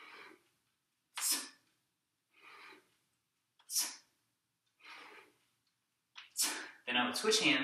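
A man exhales sharply with effort.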